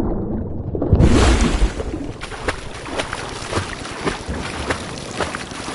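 Water splashes and laps as a swimmer breaks the surface.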